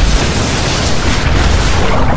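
A boat engine roars over the water.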